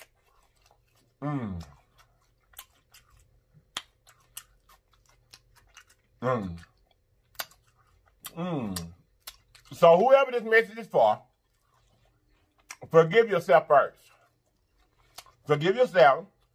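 A man chews and smacks food with wet mouth clicks.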